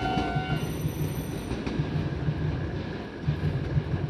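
A crossing barrier creaks as it rises.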